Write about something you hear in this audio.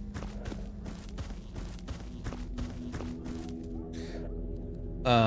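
Footsteps crunch steadily on hard ground.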